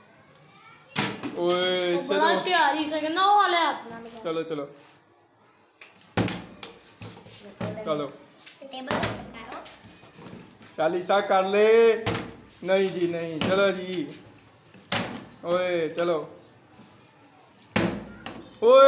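A plastic bottle thumps onto a table.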